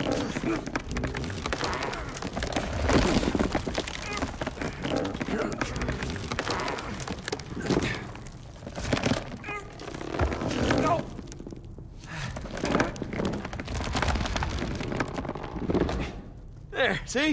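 Stones crunch and scrape underfoot.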